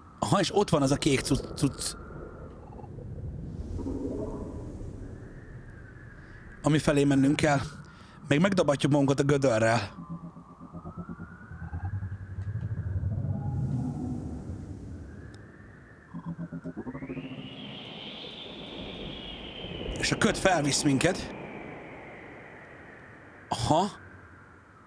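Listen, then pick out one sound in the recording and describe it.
A man speaks with animation close to a microphone, in short bursts.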